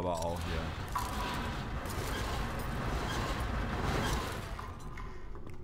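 A heavy metal crate scrapes along a stone floor.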